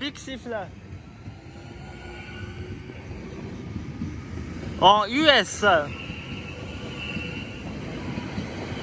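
An electric train rolls past with a low, rising rumble.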